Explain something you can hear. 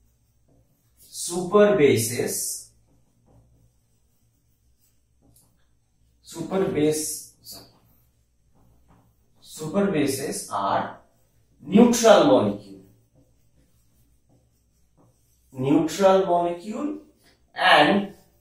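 A man speaks slowly and clearly through a headset microphone, in short phrases with pauses.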